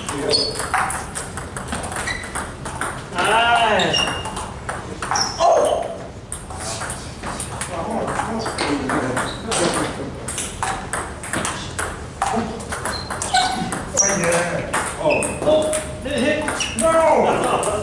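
Table tennis balls click rapidly off paddles and tables in an echoing hall.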